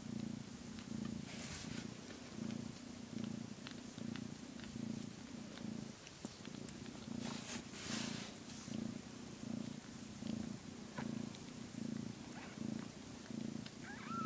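A cat purrs loudly and steadily up close.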